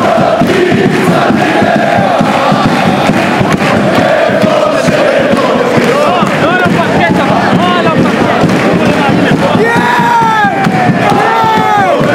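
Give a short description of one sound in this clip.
A large crowd of fans chants and cheers loudly in an echoing arena.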